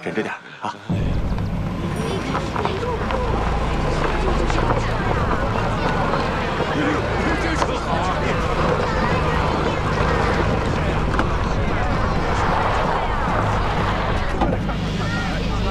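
A car engine rumbles as a car drives slowly along a street.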